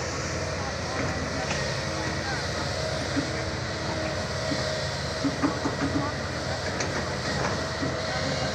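Dirt and rocks thud and clatter into a truck bed.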